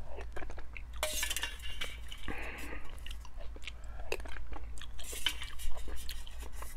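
A man slurps soup loudly close to a microphone.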